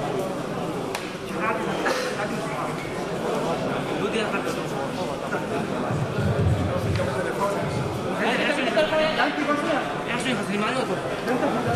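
A man talks on a phone close by.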